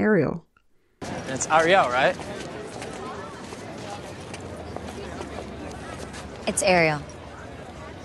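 A young woman speaks casually over a murmuring crowd outdoors.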